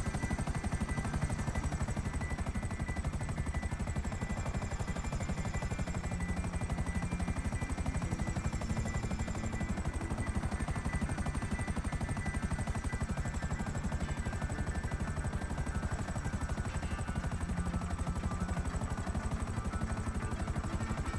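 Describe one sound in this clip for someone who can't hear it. A helicopter's engine whines high and steady.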